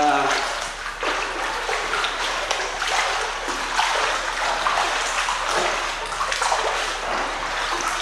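Water splashes and churns as a man wades and swims.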